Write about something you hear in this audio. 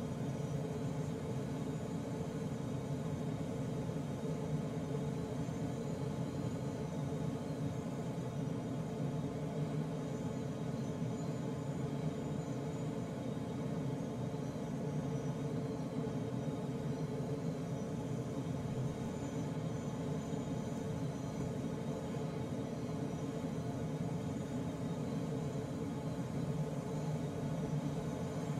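Air rushes steadily past a glider's canopy in flight.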